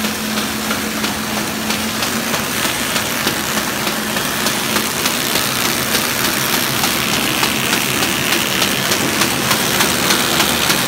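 A machine clicks rapidly and regularly.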